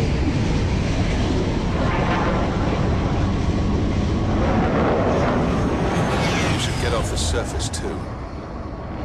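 Strong wind roars and then dies down.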